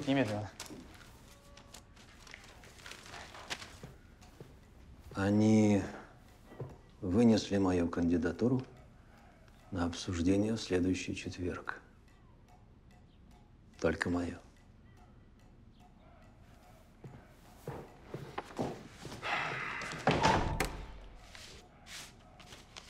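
Papers rustle on a desk.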